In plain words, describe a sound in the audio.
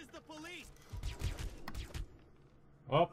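A pistol fires a shot up close.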